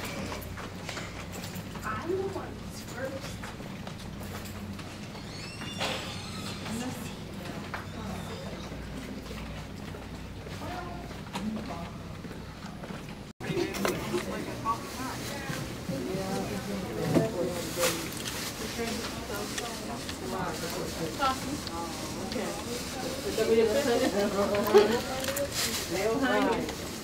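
Wheelchair wheels roll over a hard floor.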